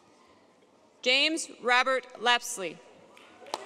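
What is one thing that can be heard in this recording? A woman reads out into a microphone over loudspeakers in a large hall.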